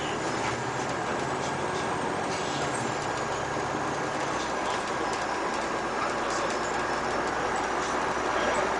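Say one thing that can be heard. A diesel bus drives at speed along an asphalt road, heard from inside the cab.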